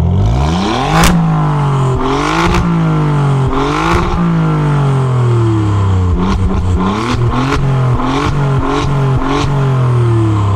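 A car exhaust crackles and pops as the engine drops back.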